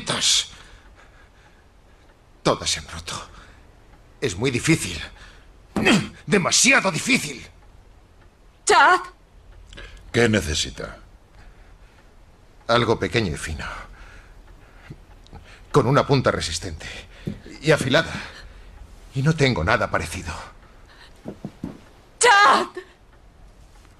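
A man speaks in a strained, pained voice, close by.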